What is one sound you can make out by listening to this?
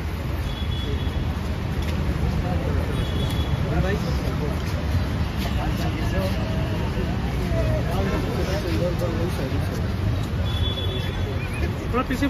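Several men shout and call out over each other nearby, outdoors.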